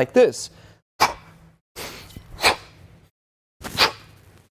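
A man breathes out sharply with effort.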